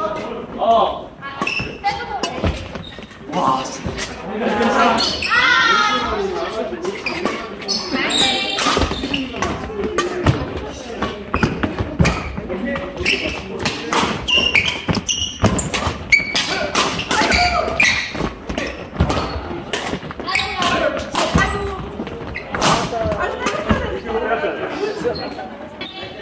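Young adult players shout and call out with animation.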